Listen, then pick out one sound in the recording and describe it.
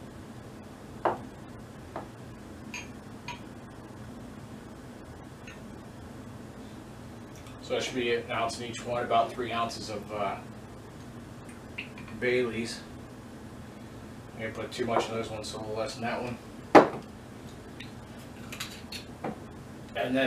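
Glass clinks on a wooden counter.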